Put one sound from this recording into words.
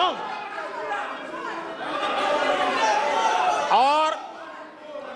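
A crowd of men calls out together in a large hall.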